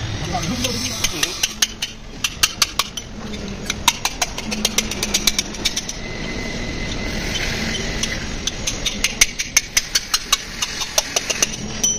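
A ratchet wrench clicks rapidly as bolts are turned.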